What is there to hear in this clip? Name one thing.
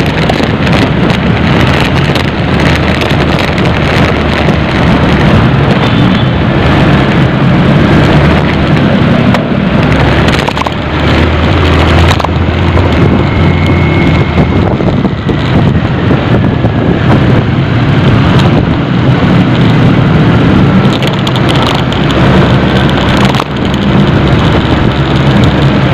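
A car drives along a paved road, heard from inside the cabin.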